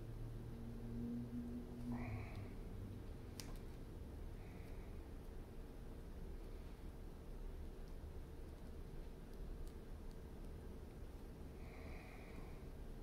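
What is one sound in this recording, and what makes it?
Soft clay squishes faintly under fingers.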